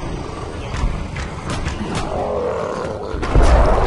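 Blows thud during a fight.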